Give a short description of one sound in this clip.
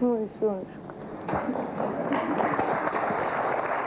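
A young woman laughs softly close by.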